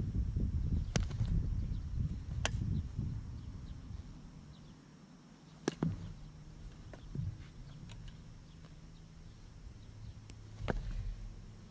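Lacrosse balls thud sharply against a goalie's stick.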